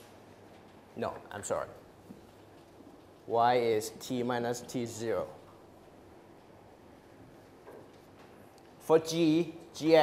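A man lectures through a clip-on microphone, speaking in short bursts with pauses.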